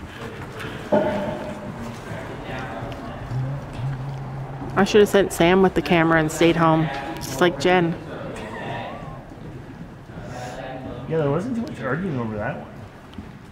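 An adult woman calls out loudly, with echo in a large hall.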